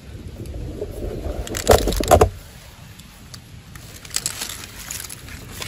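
Hands splash and dabble in shallow water.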